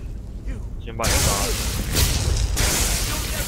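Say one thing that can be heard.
A magic spell crackles and roars loudly.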